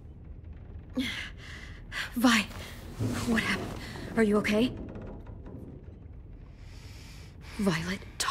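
A young woman speaks quietly and hesitantly.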